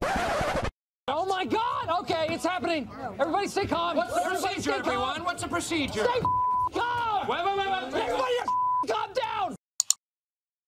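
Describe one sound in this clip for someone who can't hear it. A man speaks with excitement, close by.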